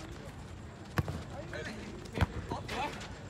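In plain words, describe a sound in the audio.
A football thuds as it is kicked.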